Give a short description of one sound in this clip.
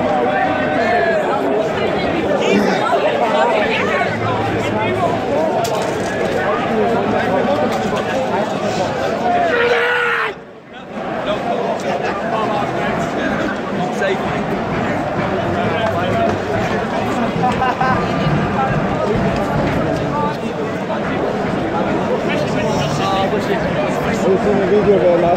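A crowd of men talks and shouts all around outdoors.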